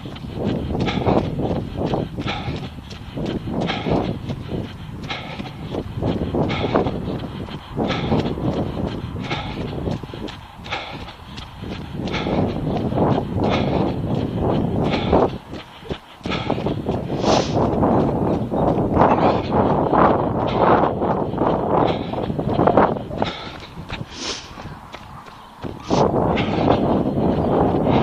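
Footsteps of a runner slap steadily on a wet path.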